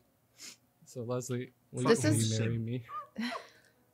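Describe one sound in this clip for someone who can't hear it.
A young man laughs and talks into a microphone.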